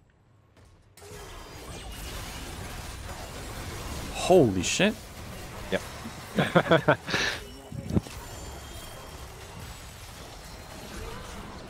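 Game battle sounds whoosh and clash with bursts of spell effects.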